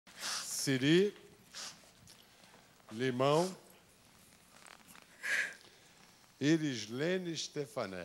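A middle-aged man speaks calmly through a microphone over a loudspeaker.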